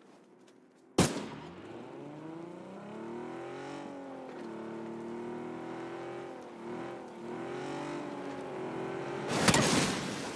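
A car engine revs.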